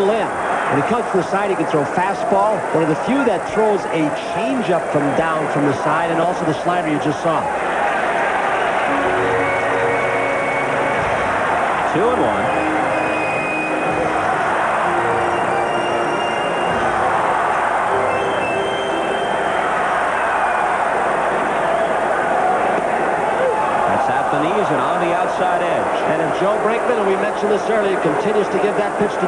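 A large crowd murmurs and cheers in a big echoing stadium.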